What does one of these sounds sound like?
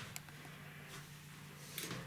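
A finger presses an elevator button with a soft click.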